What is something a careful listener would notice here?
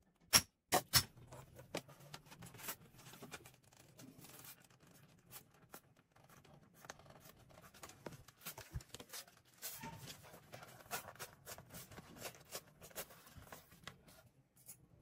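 Stiff leather rustles and scrapes as it is handled.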